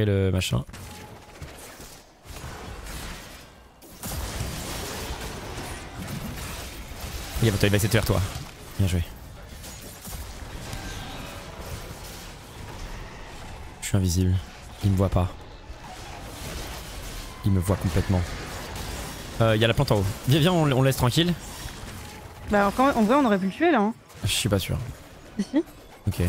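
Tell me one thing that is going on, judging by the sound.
A young man speaks with animation into a microphone, close up.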